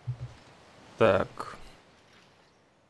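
A young man speaks briefly and casually into a nearby microphone.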